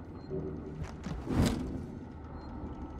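A heavy sliding door hisses open.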